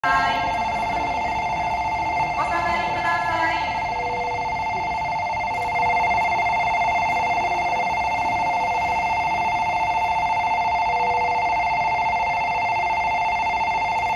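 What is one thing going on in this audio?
A train rolls slowly into the station.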